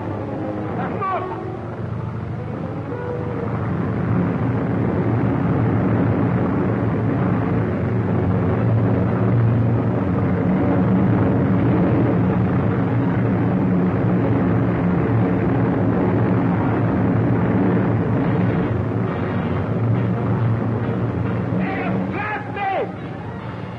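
A man shouts.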